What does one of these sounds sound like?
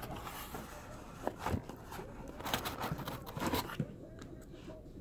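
Hands rustle and knock through packs in a cardboard box.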